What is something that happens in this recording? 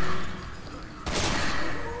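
A gunshot rings out.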